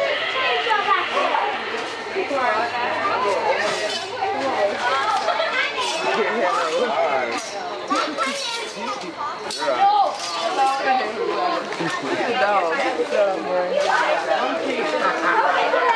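A crowd of adults talks and chatters loudly nearby.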